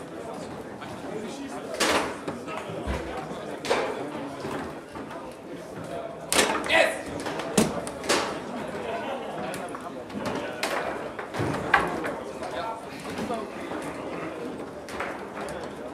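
A ball clacks and rods rattle on a table football game.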